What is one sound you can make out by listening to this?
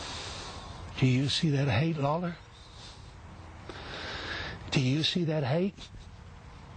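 An older man speaks forcefully and close up, in short bursts.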